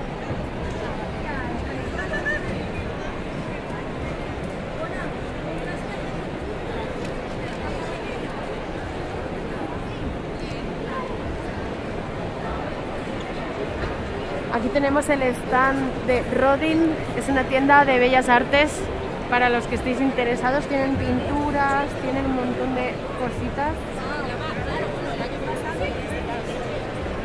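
A crowd murmurs throughout a large, echoing hall.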